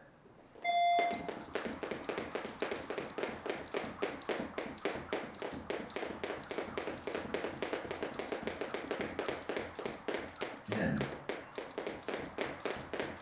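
Jump ropes slap the floor rapidly and steadily.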